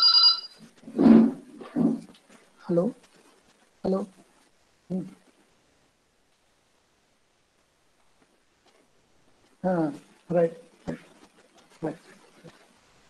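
A middle-aged man speaks calmly over an online call, in short bursts with long pauses.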